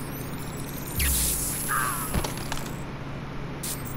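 Steam hisses loudly.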